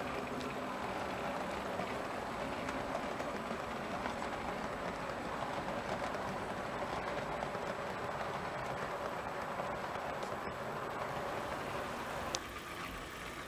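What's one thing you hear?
Model train wagons rumble and clatter steadily along the track.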